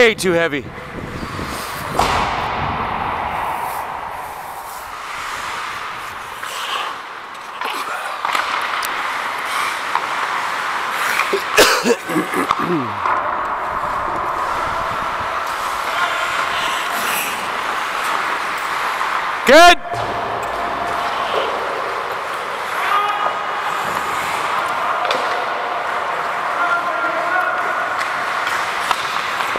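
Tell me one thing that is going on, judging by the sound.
Sounds echo through a large indoor rink.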